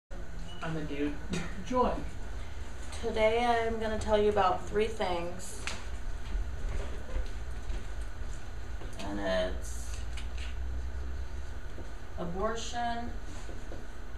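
A young woman speaks calmly, nearby, in short phrases with pauses.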